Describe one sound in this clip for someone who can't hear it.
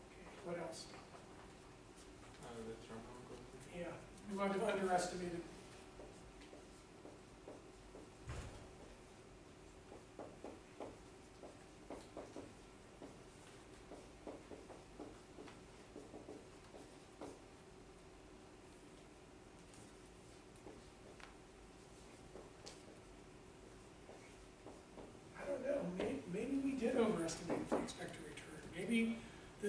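A man speaks calmly to a room.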